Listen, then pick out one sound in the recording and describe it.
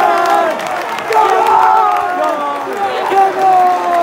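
Fans clap their hands.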